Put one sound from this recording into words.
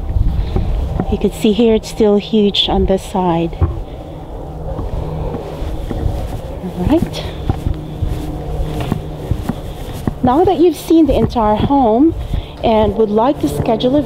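A woman speaks calmly close to the microphone.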